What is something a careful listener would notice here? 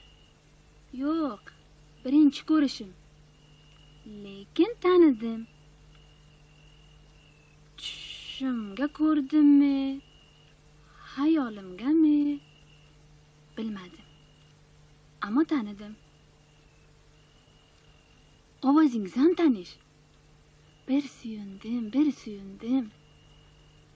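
A woman speaks with animation, in short bursts with pauses.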